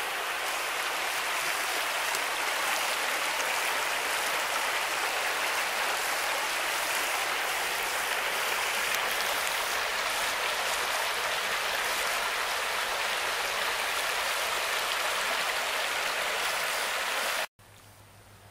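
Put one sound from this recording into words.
Shallow water rushes and babbles over stones.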